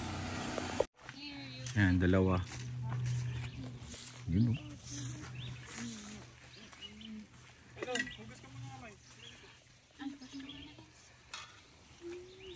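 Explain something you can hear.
Children and adults chat nearby outdoors.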